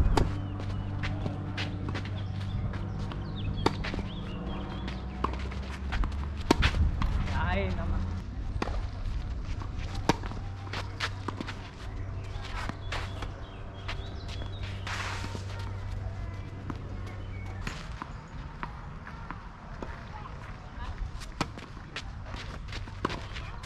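Tennis balls are struck with rackets in a rally.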